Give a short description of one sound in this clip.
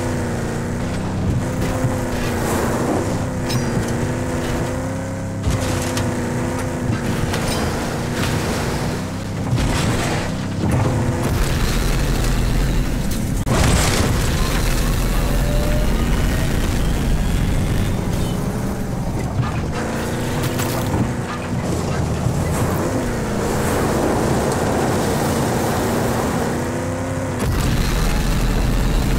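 Tyres crunch and skid on dirt and gravel.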